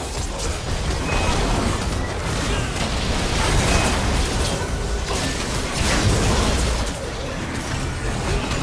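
Game spell effects crackle and blast during a battle.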